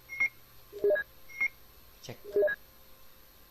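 Short electronic menu beeps chirp.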